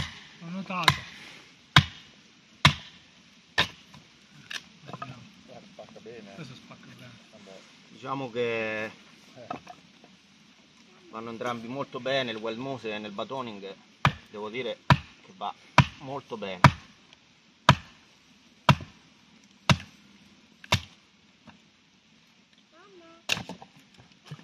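A wooden baton knocks sharply and repeatedly on a knife blade, splitting wood.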